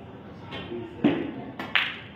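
A cue strikes a billiard ball with a sharp tap.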